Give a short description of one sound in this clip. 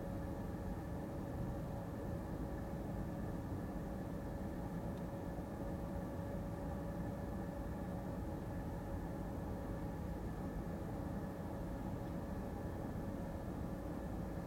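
A car engine idles with a low, steady hum heard from inside the car.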